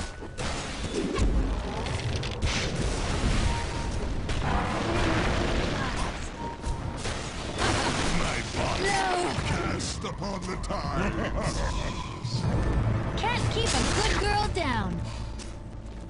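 Game spells and attacks crackle and boom in bursts.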